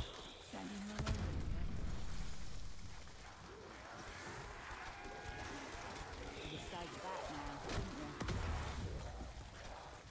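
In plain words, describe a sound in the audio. A magical weapon fires booming blasts of fire.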